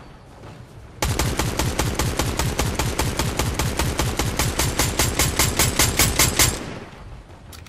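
A rapid-fire gun shoots a long, fast burst.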